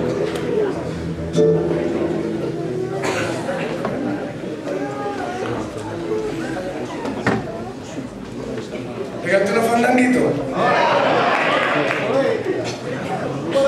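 A man sings with feeling into a microphone.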